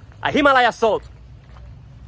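A young man speaks loudly and with animation, close to the microphone.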